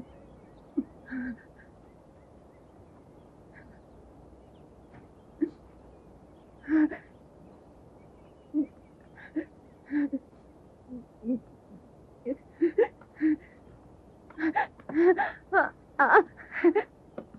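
A woman speaks with agitation, in short bursts, outdoors.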